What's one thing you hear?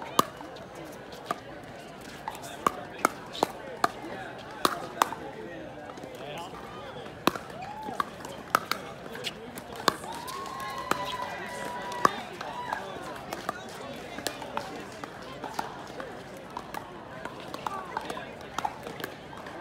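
Paddles hit a plastic ball with sharp hollow pops.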